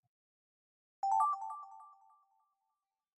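A short bright chime rings out from a game.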